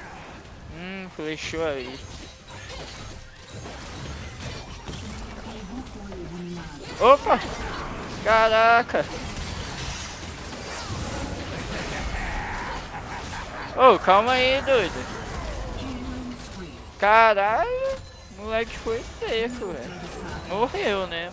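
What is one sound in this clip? Video game spell effects whoosh and clash.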